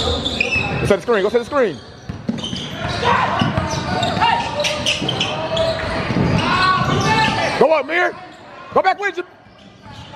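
Sneakers squeak sharply on a gym floor.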